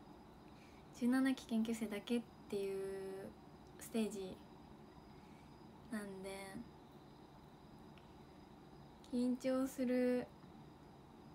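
A young woman speaks softly and cheerfully close to a microphone, with short pauses.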